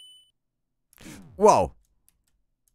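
A short video game sound effect plays as the player is hit.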